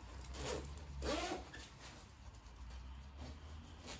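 A zipper is pulled up.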